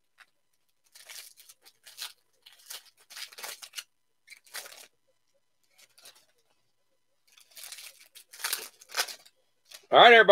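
Playing cards rustle and slide against each other.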